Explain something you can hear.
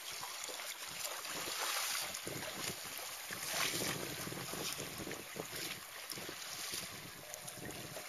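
A paddle dips and splashes in the water nearby.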